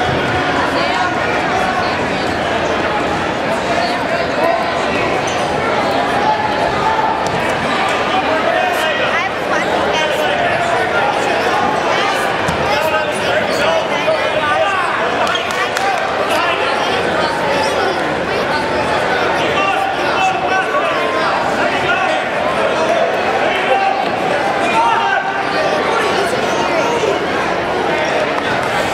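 Men and women shout encouragement loudly from close by.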